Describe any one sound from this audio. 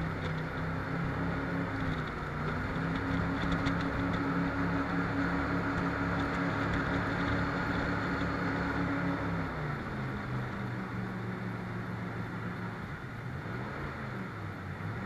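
A boat engine roars steadily, changing pitch as it slows and speeds up.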